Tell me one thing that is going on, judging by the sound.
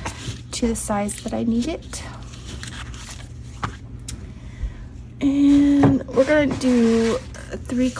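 Fabric rustles as hands smooth it flat.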